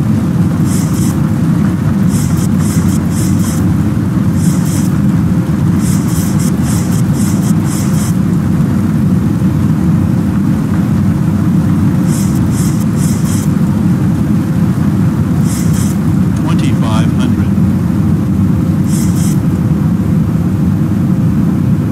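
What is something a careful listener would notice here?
A steady low roar of jet engines and rushing air fills an aircraft cockpit.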